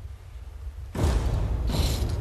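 Metal clips clink against a steel cable close by.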